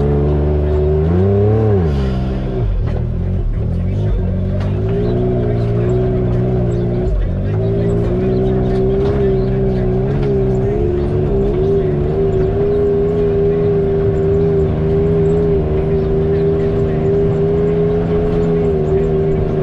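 An off-road vehicle's frame rattles and clatters over bumps.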